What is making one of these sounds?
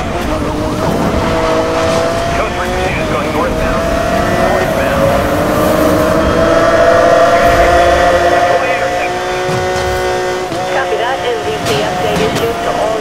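A sports car engine roars at high revs, its pitch rising and dropping with gear changes.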